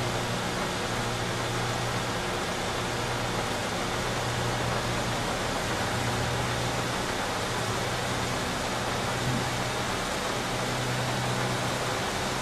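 A van engine hums steadily as it drives along.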